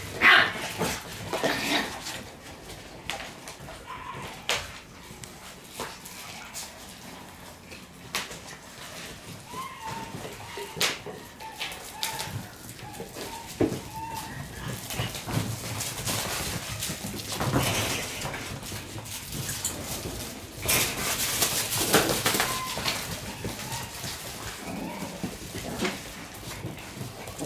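Puppies' claws skitter and tap on a hard floor.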